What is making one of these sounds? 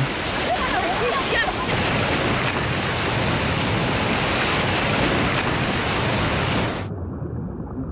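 Swimmers splash through the water.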